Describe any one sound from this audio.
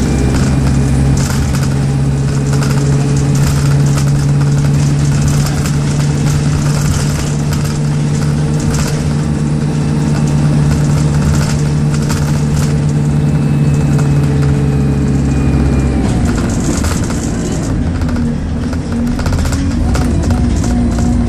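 A bus engine hums and drones steadily from inside.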